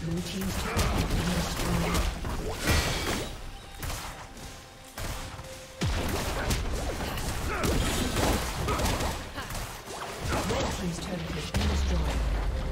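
Magic blasts and clashing battle effects crackle in quick bursts.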